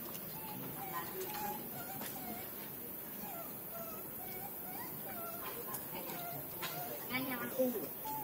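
A monkey makes short squeaky calls nearby.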